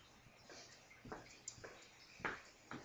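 Footsteps knock on a hard tile floor close by.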